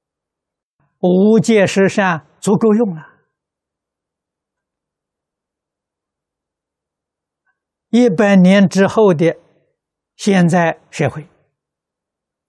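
An elderly man speaks calmly and warmly into a close microphone, with long pauses.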